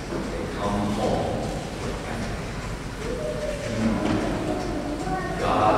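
A man speaks slowly and steadily in a large echoing hall.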